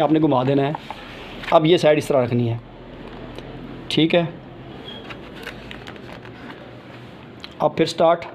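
Pages of a book rustle as hands handle it.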